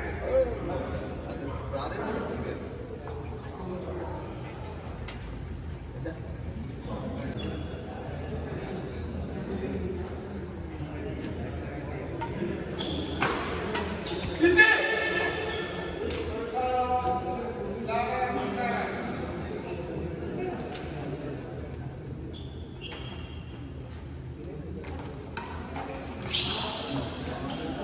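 Men talk and call out across the hall.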